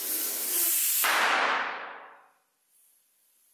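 Air hisses out of a deflating balloon.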